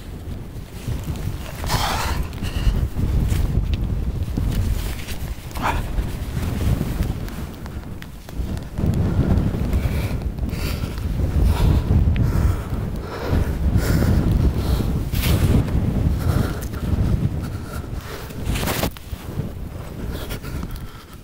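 Wind gusts roughly outdoors.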